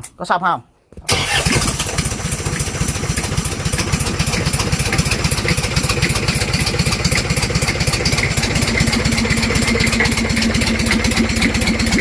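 A diesel engine starts up and runs with a loud, steady clatter.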